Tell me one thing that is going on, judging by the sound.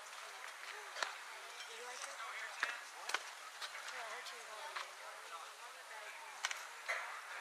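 A softball smacks into a catcher's mitt.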